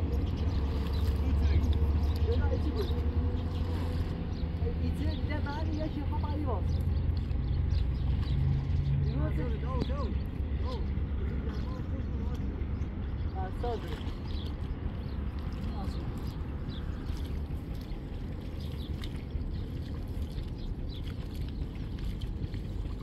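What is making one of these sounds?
Water splashes softly as men wade and plant seedlings in a flooded field.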